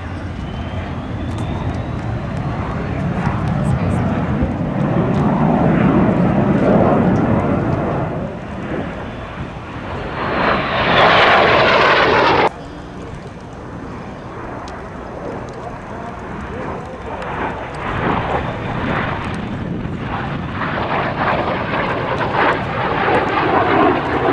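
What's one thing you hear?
A jet engine roars loudly as a plane flies overhead, swelling and fading.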